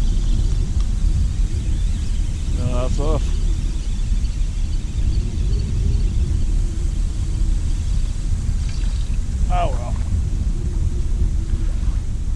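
A fishing reel clicks as its handle is wound.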